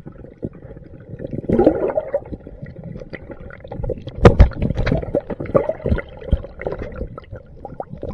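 Water churns and bubbles underwater, heard close up.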